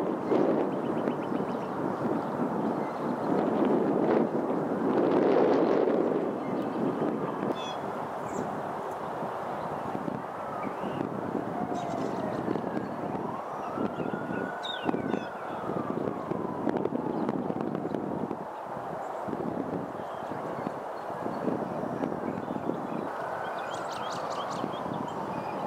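A pheasant's feet rustle through dry leaves and grass.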